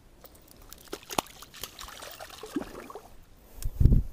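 A fish splashes and thrashes in shallow water.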